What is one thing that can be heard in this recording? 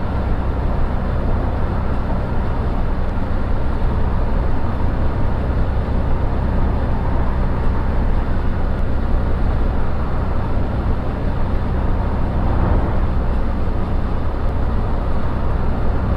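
Tyres roll and rumble on asphalt.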